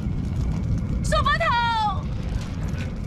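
A young woman cries out in distress.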